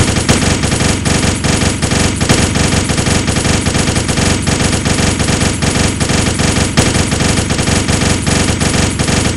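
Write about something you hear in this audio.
Rapid gunshots fire in a quick, steady rhythm.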